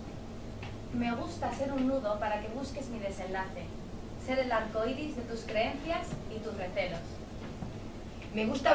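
A young woman speaks loudly and with animation on a stage.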